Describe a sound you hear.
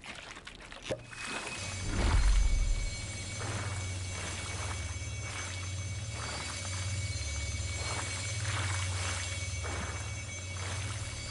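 A crackling energy beam hums steadily with a low drone.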